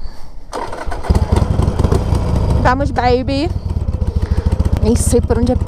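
A motorcycle engine starts and idles with a low rumble.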